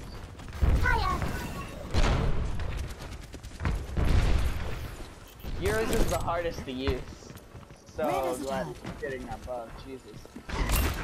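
A revolver fires loud, booming shots.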